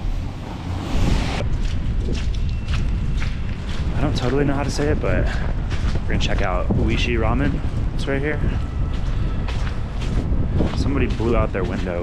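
Wind and traffic rumble outdoors.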